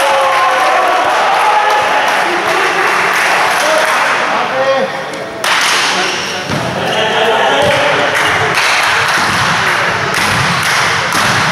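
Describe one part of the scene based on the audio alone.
Spectators and players shout and cheer in a large echoing hall.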